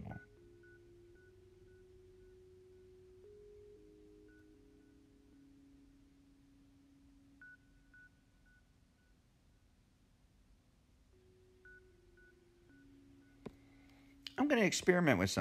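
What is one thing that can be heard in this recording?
Soft, quiet game music plays a slow tune.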